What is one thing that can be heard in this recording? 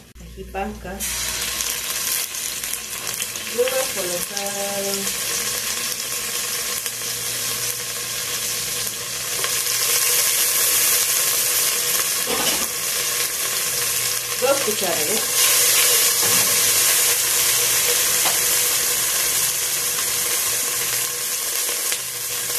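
Tomato paste sizzles and crackles in hot oil in a pot.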